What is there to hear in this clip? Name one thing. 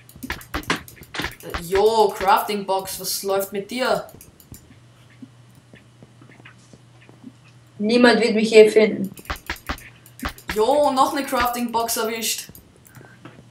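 A young boy talks with animation into a close microphone.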